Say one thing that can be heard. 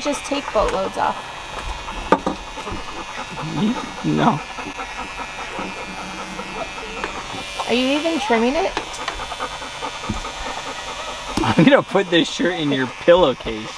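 An electric beard trimmer buzzes steadily.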